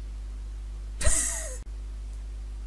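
A magical spell bursts with a bright whoosh.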